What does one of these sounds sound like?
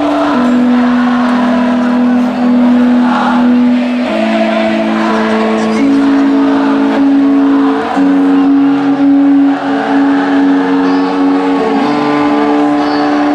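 An electric guitar plays a sustained melody through loud amplifiers.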